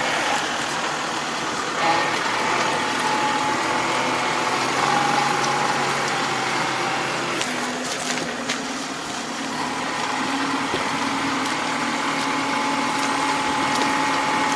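A tractor engine hums steadily nearby.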